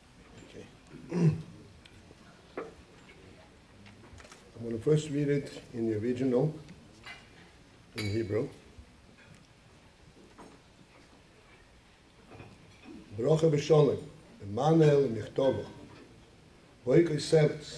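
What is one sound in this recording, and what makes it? An elderly man reads out slowly into a microphone, in short phrases with pauses.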